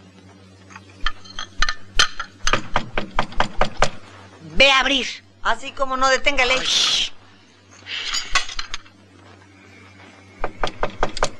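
Dishes clink and clatter.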